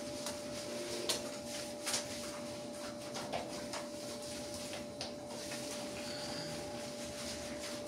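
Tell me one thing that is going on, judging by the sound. Water splashes and drips on a tiled floor.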